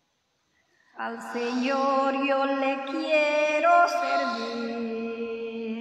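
A woman sings loudly through a microphone and loudspeaker.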